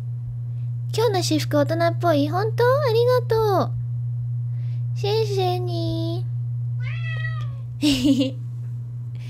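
A young woman sings in short phrases close to a microphone.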